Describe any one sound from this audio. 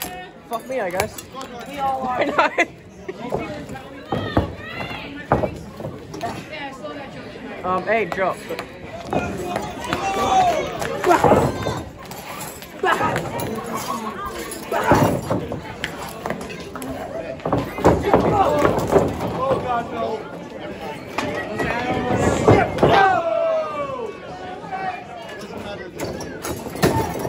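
A crowd of spectators shouts and cheers nearby in an echoing room.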